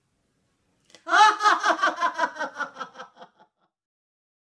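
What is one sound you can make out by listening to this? A woman laughs loudly and heartily close by.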